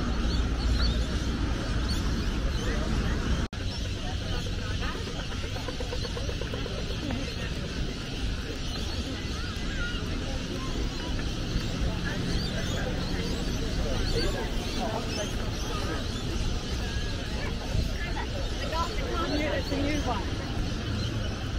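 A crowd of young men and women chatter nearby outdoors.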